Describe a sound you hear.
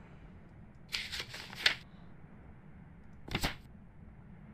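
Paper pages of a notebook flip over with a quick rustle.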